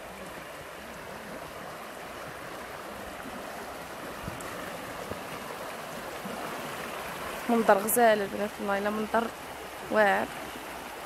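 A shallow stream rushes and splashes over rocks.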